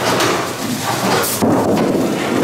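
A bowling ball thuds onto a wooden lane.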